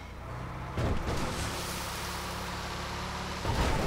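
Water splashes as a heavy truck drives through it.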